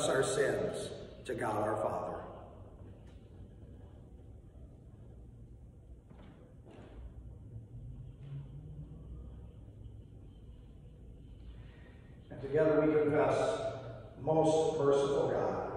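A man speaks calmly into a microphone in a large echoing room.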